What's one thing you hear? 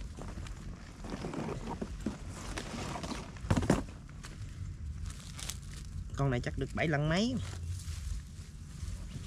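A plastic mesh bag rustles.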